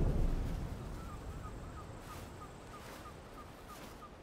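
A bird of prey gives short, repeated high cries.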